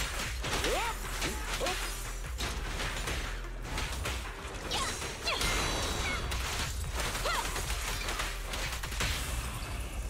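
Weapons clash and slash with sharp impacts.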